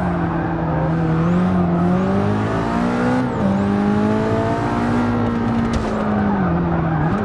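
A car engine roars loudly, its pitch rising through the gears and dropping at each gear change.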